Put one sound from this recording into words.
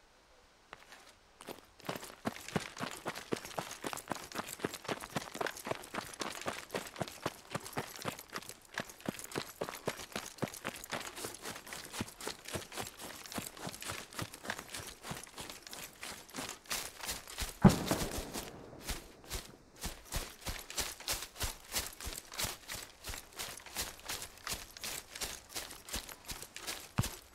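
Footsteps run quickly and steadily over grass.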